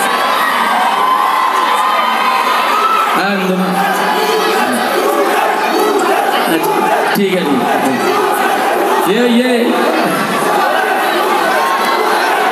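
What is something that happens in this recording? A crowd cheers and screams close by.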